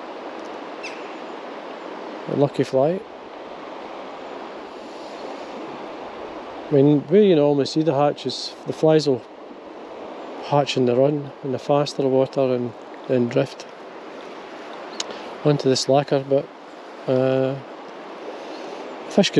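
A shallow river flows and ripples steadily over rocks.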